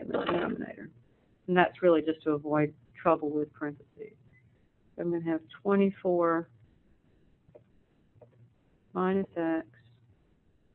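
A young man speaks calmly through a microphone, in short phrases with pauses.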